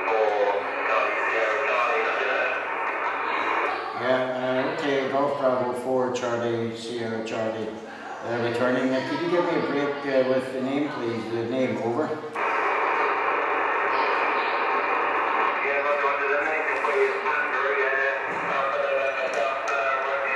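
A man's voice comes through a radio loudspeaker, thin and crackly.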